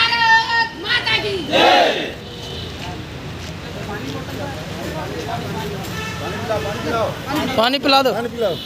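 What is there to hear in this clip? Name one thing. Young men shout slogans together outdoors.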